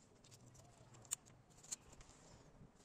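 A crimping tool clicks shut on a plug.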